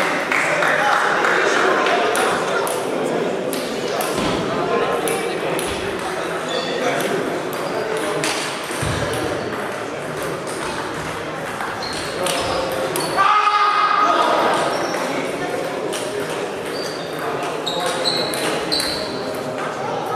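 Table tennis balls click against paddles and tables in a large echoing hall.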